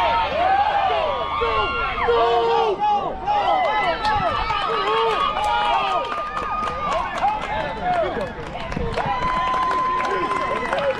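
Young women shout and cheer from across an open field.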